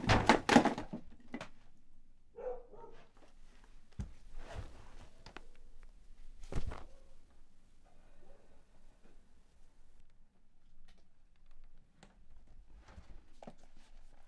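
Objects knock and rustle as someone rummages through a box.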